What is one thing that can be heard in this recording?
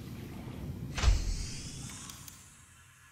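A hatch opens with a sudden loud whoosh.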